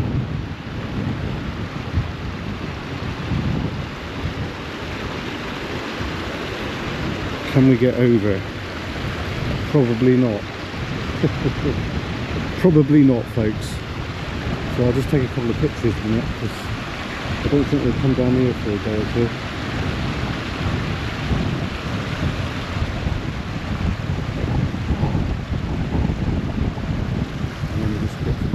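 Wind blows gustily into the microphone outdoors.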